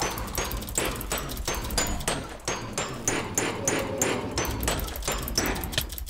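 Quick blows thud repeatedly against a creature.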